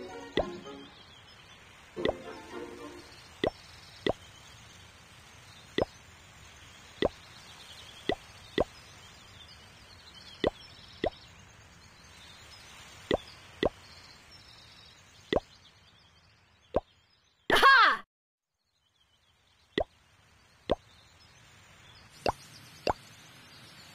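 Short game chimes ring out again and again as rewards are collected.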